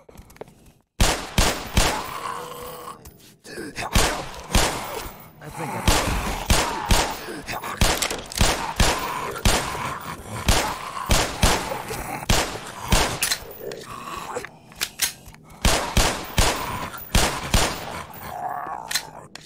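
A pistol fires rapid shots that echo loudly.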